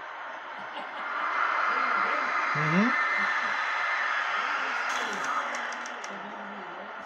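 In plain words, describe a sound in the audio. A powerful beam of energy roars and hisses loudly.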